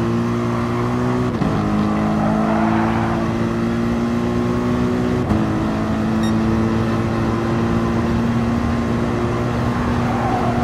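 A racing car engine roars at high revs, rising in pitch as it accelerates.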